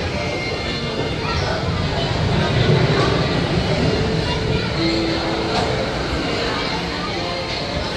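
A carousel rumbles as it turns.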